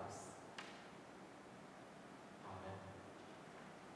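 A man speaks calmly through a microphone in an echoing room.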